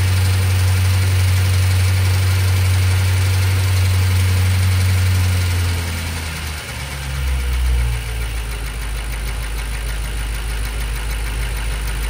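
A car engine idles with a steady low hum, dropping lower partway through.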